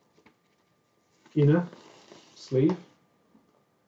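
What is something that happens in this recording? A paper record sleeve rustles as a record slides out.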